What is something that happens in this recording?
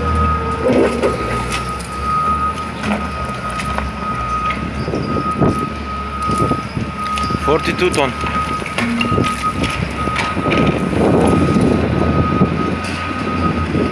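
A stone block scrapes along gravel as a loader pushes it.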